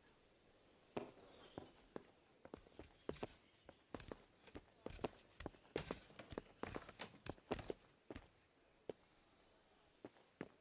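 Wooden ladder rungs knock and creak as someone climbs.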